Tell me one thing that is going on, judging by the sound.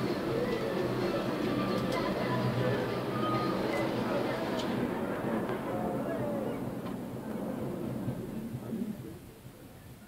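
A cable car cabin hums steadily as it glides along its cable.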